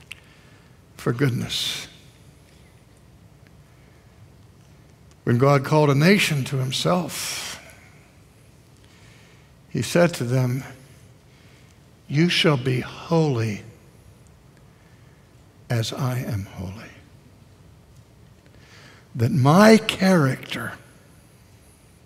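An older man speaks with emphasis through a microphone, in short bursts with long pauses.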